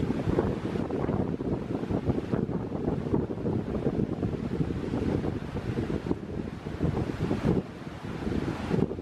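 A river rushes over rocks nearby.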